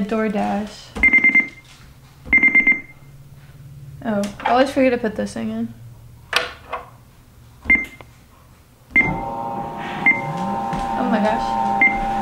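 A treadmill console beeps as buttons are pressed.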